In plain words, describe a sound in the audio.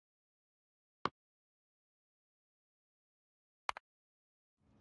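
Soft interface clicks sound a few times.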